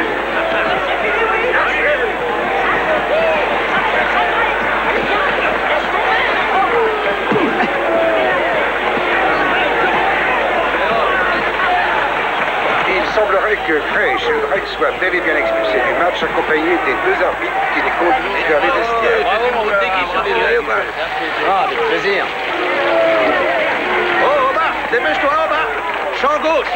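A crowd of men shout and yell excitedly.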